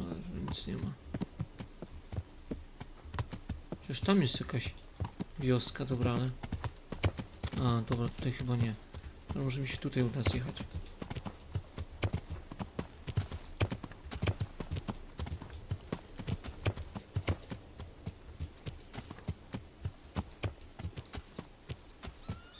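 A horse's hooves thud at a steady trot on a dirt path and grass.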